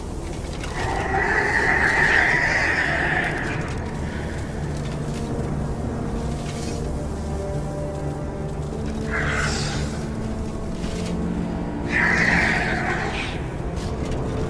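A large metal machine clanks and whirs as it climbs.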